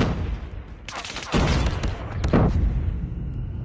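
Gunfire bursts rapidly in a video game.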